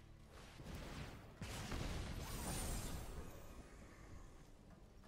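A game sound effect whooshes and swells, then fades.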